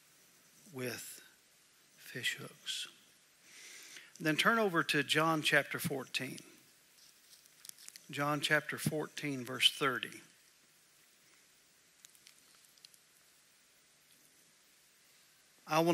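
A middle-aged man reads aloud slowly and calmly through a microphone.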